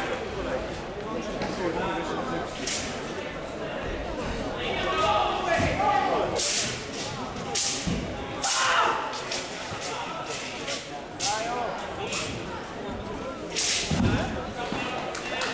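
A staff swishes through the air.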